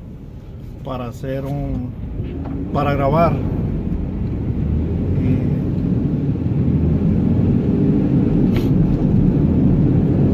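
A car engine hums low and steadily.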